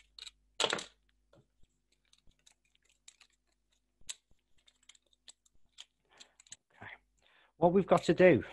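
Small objects click and tap faintly as hands handle them.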